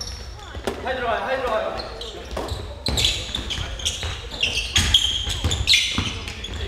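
A basketball bounces on a hard floor in an echoing hall.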